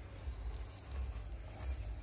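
Burning straw crackles.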